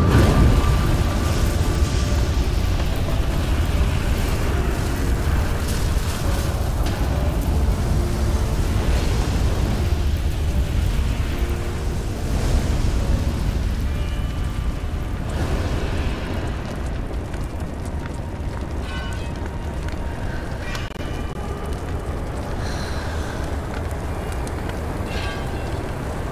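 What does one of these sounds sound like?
Flames roar and crackle steadily.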